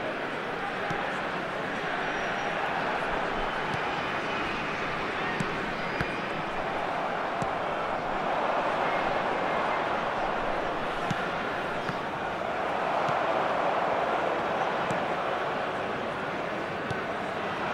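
A stadium crowd roars steadily, swelling and easing.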